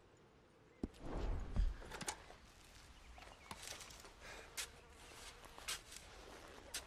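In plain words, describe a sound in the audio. Footsteps crunch over leaves and twigs.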